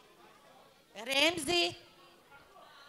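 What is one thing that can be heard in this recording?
A woman calls out loudly and cheerfully close by.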